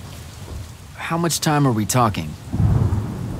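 A young man speaks a short line in a low, calm voice.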